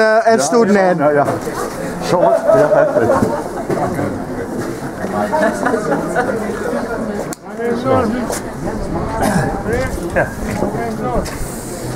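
An elderly man talks close by.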